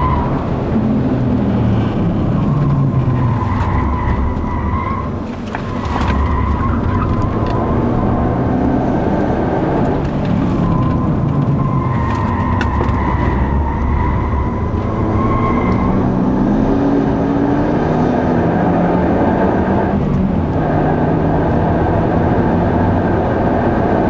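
A car engine roars loudly from inside, rising and falling in pitch as the car speeds around curves.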